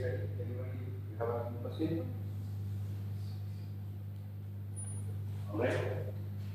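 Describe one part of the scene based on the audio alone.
A woman speaks calmly through a microphone in a large room.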